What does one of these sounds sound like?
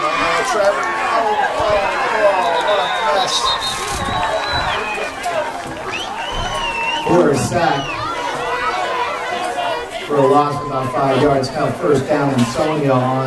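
A crowd of spectators and players chatter and shout outdoors.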